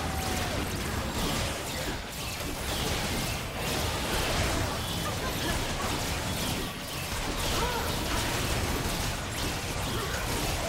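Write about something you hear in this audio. Magic blasts and hits crackle and boom in a video game battle.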